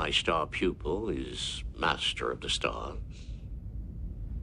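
A man speaks calmly with a deep voice.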